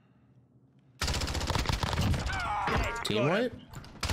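Rapid rifle gunshots ring out at close range.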